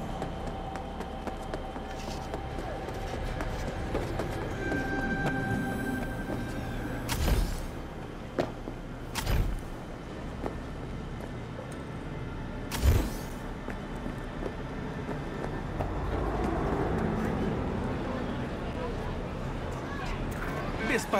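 Footsteps run steadily.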